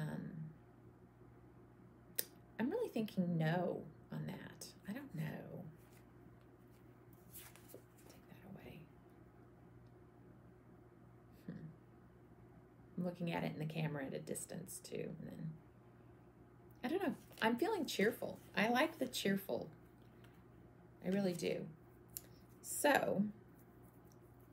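A woman talks calmly into a close microphone.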